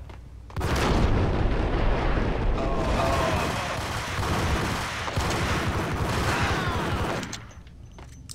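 Pistols fire in rapid bursts, echoing off stone walls.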